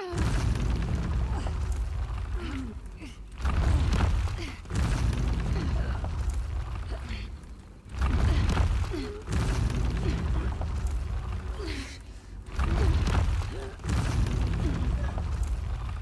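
A young woman grunts with effort.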